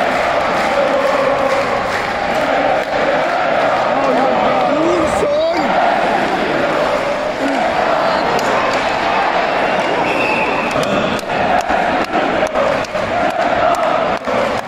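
A large crowd sings and chants loudly in a big echoing arena.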